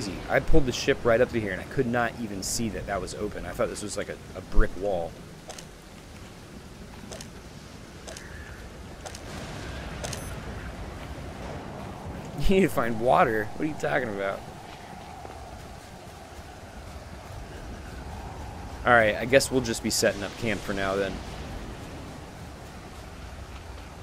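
Waves wash against a rocky shore.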